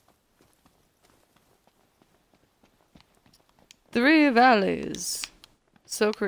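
Footsteps patter quickly on dry ground.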